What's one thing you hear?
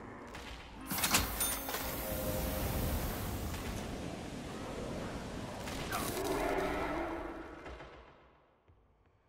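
A loud explosion roars and slowly fades.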